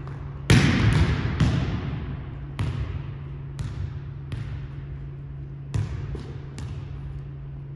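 A volleyball bounces on a wooden floor several times.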